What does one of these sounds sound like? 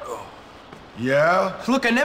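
A teenage boy answers in a pained voice.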